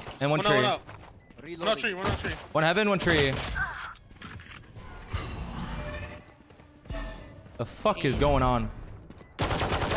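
Gunshots crack from a video game.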